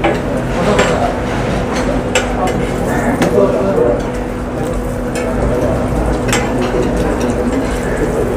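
Food sizzles in hot oil on a griddle.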